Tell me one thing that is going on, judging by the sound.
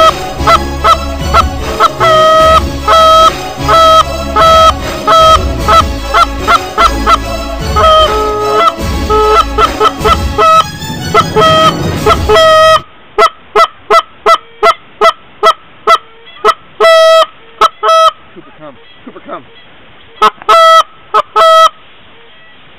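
A flock of geese honks loudly and repeatedly nearby.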